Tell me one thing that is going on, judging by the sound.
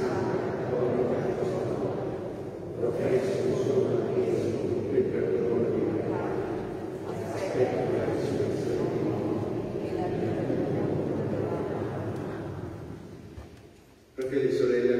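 An elderly man chants through a microphone in a large echoing hall.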